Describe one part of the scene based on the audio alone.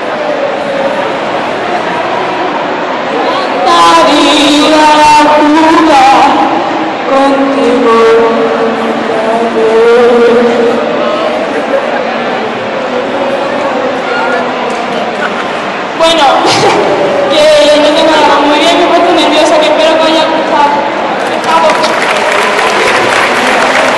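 A young man speaks with animation through a microphone and loudspeakers in a large echoing hall.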